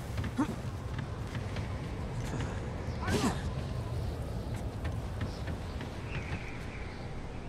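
Footsteps crunch and thud on snow.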